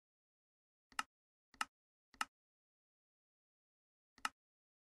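Short clicks tick one after another.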